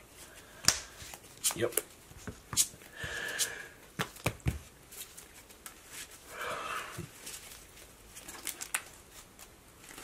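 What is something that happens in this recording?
Playing cards tap and slide on a play mat.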